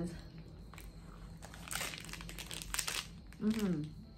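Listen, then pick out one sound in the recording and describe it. A young woman chews crunchily.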